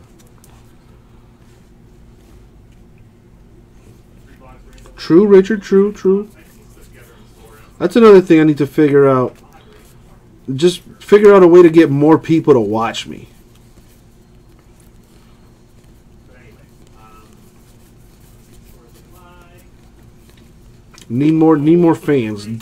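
Trading cards slide and rustle softly against each other.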